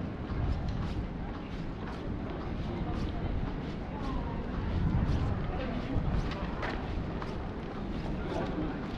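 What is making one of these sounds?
Footsteps tap steadily on paving stones.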